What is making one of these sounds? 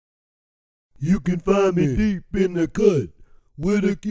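A man speaks close to the microphone with animation.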